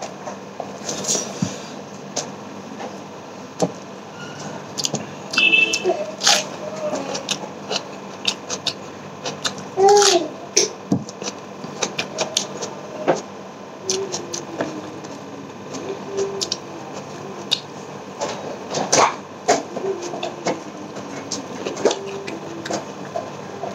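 A man chews and smacks his lips close by.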